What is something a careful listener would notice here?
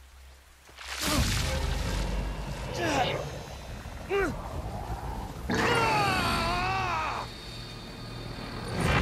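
A glowing energy blast roars and crackles loudly.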